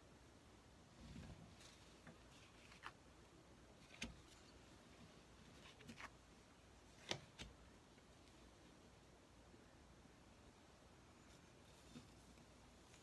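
Playing cards slide and tap softly on a cloth-covered table.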